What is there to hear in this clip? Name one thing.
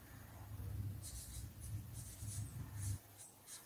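A marker scratches and squeaks across paper.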